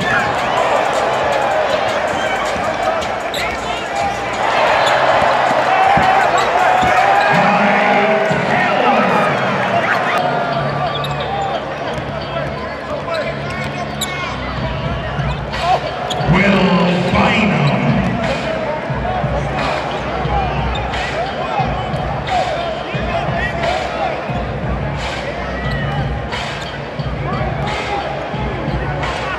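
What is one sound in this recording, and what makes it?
A large crowd cheers in a big echoing arena.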